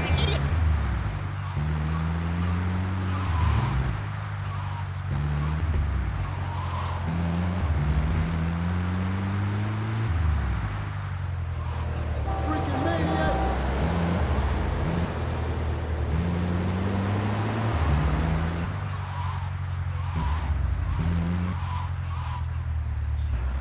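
A van engine drones and revs up through its gears.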